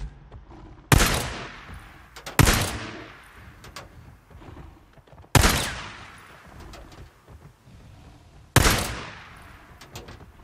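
A pistol fires single shots that echo outdoors.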